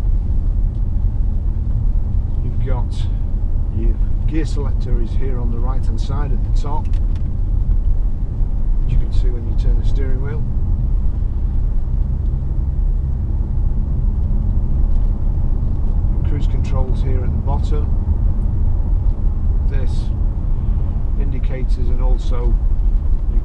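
A car engine hums with a low road rumble while driving.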